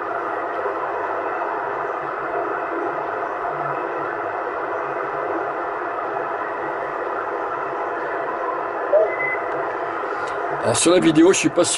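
A CB radio hisses with static while being tuned.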